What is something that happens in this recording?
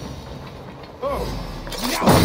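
Blades clash in a fight.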